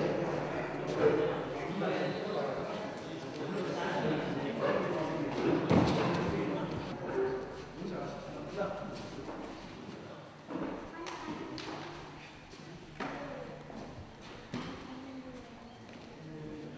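Voices of a small crowd murmur in an echoing hall.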